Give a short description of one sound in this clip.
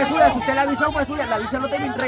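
A young man in front shouts with excitement.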